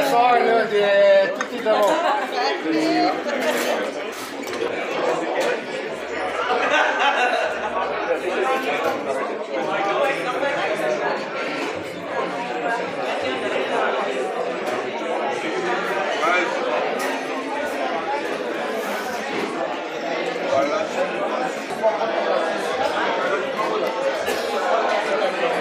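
A crowd of people chatter all around in a large echoing hall.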